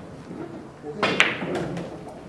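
A cue strikes a ball with a sharp tap.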